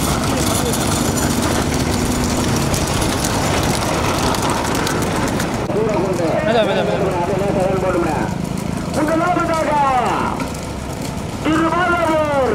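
Bulls' hooves clatter on the road.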